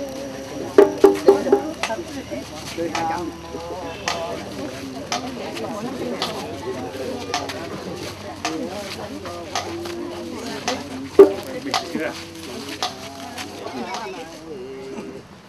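A crowd of men and women talks and wails loudly outdoors.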